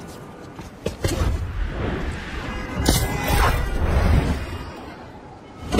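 Air rushes past in loud whooshes.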